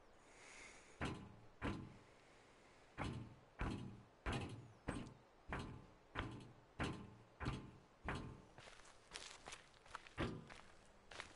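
Footsteps tap steadily on hard ground, then stop.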